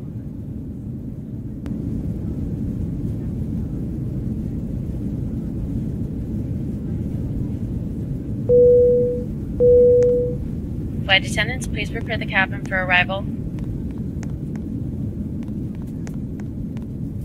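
An airliner cabin hums with a low, steady engine drone.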